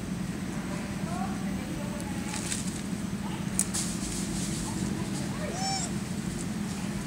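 Monkeys squeak briefly nearby.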